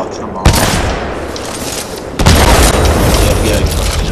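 A sniper rifle fires a single loud, booming shot.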